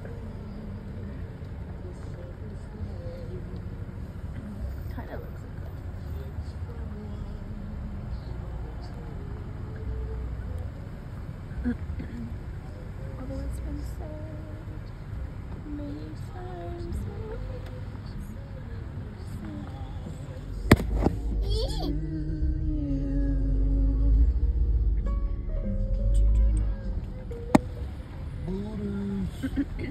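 A car engine hums low and steady from inside a slowly moving car.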